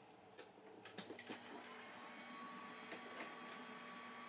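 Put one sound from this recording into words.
Small switches click a few times as a device powers on.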